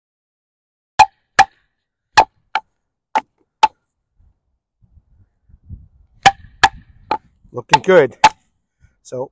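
A wooden stick knocks sharply on the back of a knife blade, splitting wood.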